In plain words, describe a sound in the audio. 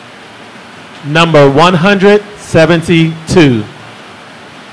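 A man speaks briefly into a microphone, heard through loudspeakers in a large room.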